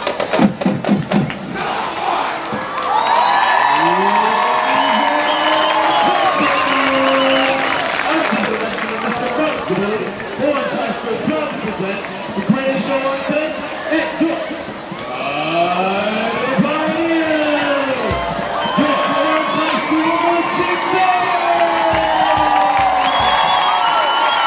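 A marching band plays loud brass music outdoors.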